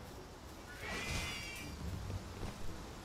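A creature gives high, chirping cries.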